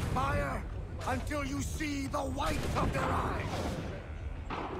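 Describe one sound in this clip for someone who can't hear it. A man calls out orders loudly to a group.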